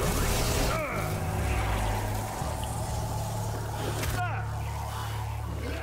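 Electricity crackles and snaps.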